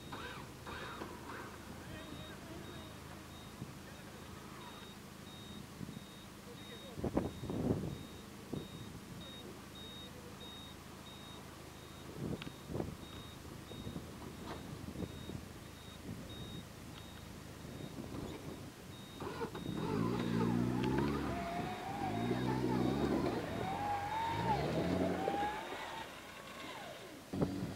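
An off-road vehicle's engine idles with a low rumble.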